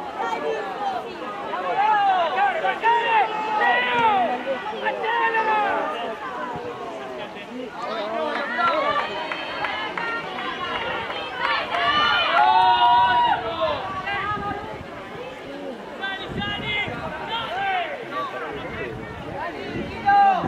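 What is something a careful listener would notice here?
Young men shout to each other across an open field outdoors.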